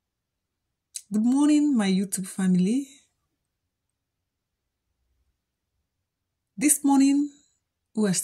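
A middle-aged woman speaks close to the microphone in a calm, friendly voice.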